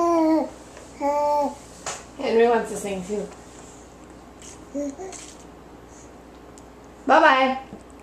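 A baby sips from a cup.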